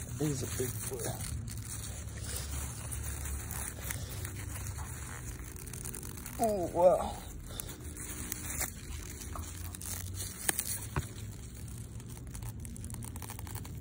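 Leafy plants rustle as a hand pushes through them.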